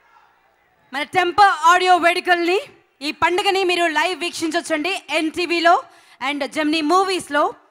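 A woman speaks animatedly through a microphone over loudspeakers.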